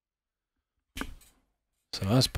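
A plastic board is handled with a soft knock.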